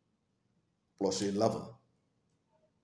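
A middle-aged man speaks briefly and calmly close to the microphone.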